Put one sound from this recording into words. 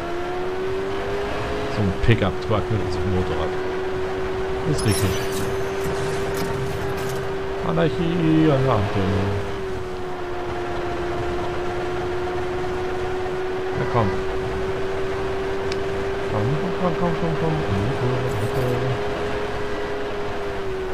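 A motorcycle engine drones steadily at high speed.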